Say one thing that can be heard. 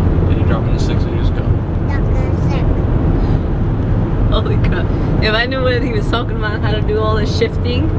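A young woman talks and laughs with animation close by.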